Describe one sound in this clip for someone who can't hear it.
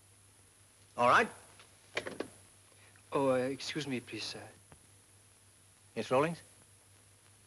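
A young man speaks in short, hesitant replies.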